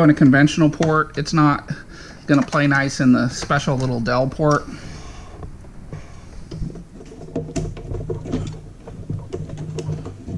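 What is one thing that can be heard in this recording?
Small plastic and metal parts click and rattle as a computer part is fitted into place.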